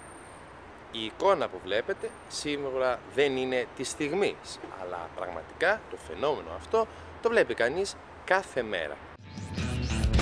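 A young man talks calmly up close.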